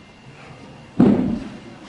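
A heavy ball lands on the floor with a thud in an echoing hall.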